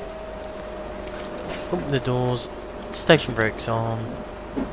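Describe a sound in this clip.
Bus doors hiss and thump open.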